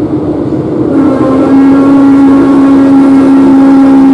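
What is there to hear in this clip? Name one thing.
A train's electric motor gives a steady, pitched whine.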